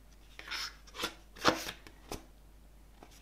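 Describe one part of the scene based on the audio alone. Fingers tap and knock against a booklet's cover.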